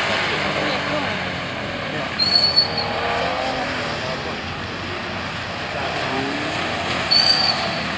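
A car engine revs and drops as the car slides.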